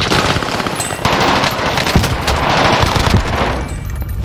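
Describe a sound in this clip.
A gun fires several shots in quick succession.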